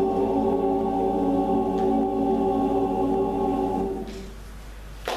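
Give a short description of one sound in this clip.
A choir sings a held chord in a large hall and stops.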